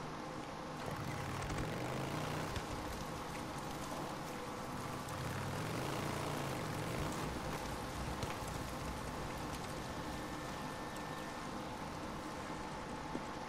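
A motorcycle engine roars steadily, rising and falling in pitch.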